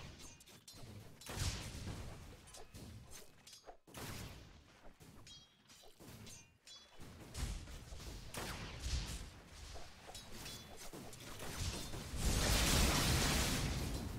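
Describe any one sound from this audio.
Sound effects of a fantasy battle game crackle and clash.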